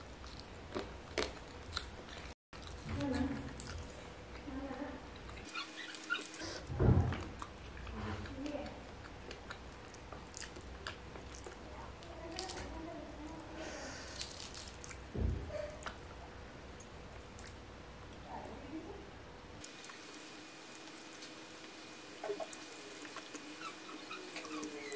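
Fingers squish and rustle through food on a plate up close.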